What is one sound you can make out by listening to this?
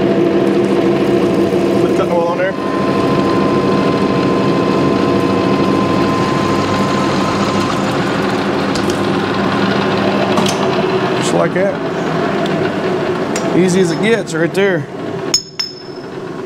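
A drill press motor hums steadily.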